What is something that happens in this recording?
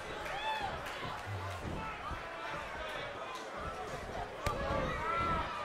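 A crowd cheers and whistles in a large arena.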